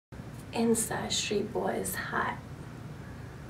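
A young woman speaks close to a microphone in a bright, promotional tone.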